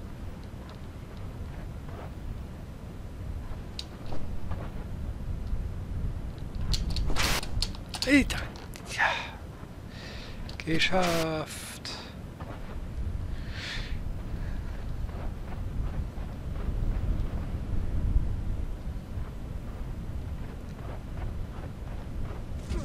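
Footsteps crunch softly on gravel and rock.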